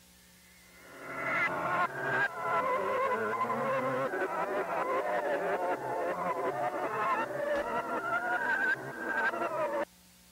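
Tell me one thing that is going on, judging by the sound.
A young man screams and shouts loudly in fright.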